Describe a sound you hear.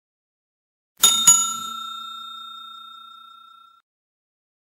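A bell chimes and rings out slowly.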